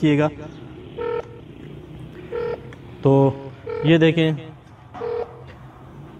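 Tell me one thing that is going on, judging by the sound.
An electronic meter beeps in short, steady electronic tones.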